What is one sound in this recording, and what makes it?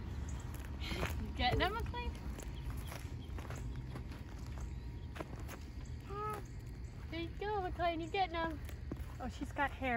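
A young woman talks gently and playfully close by.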